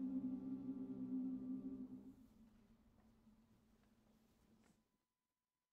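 A choir and horns hold a final chord that dies away in an echoing hall.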